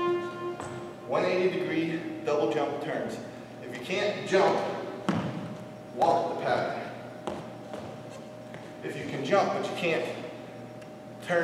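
An adult man talks in an echoing hall.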